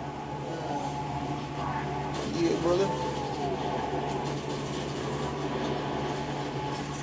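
Video game sounds play steadily from a television's speakers.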